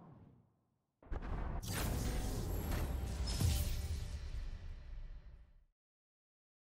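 A short game fanfare plays for a lost round.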